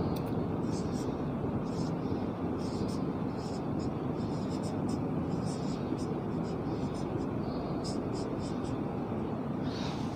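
A marker squeaks and scratches on a whiteboard in short strokes.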